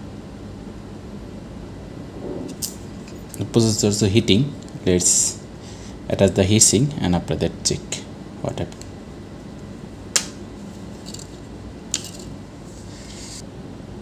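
Small metal parts click and tap as they are handled.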